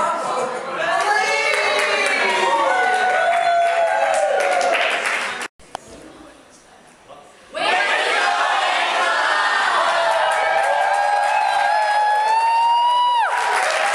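A crowd of men and women sings out long, loud notes together in a large echoing hall.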